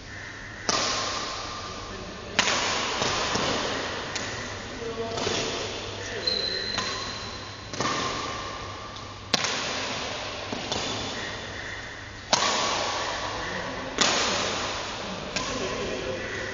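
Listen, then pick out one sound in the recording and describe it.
Sneakers squeak and patter on a hard court floor.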